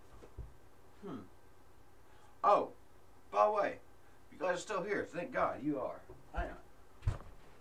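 A young man talks with animation close by, in bursts with pauses.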